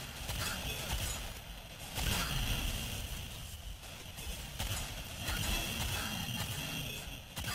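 A man talks into a close microphone.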